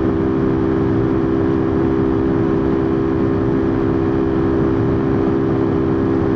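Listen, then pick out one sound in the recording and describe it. A motorcycle engine drones steadily at speed.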